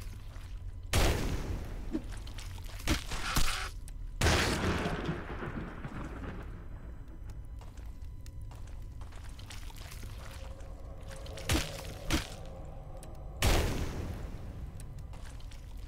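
Fire bursts with a crackling whoosh.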